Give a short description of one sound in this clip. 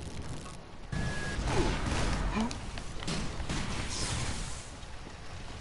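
A weapon fires a loud burst.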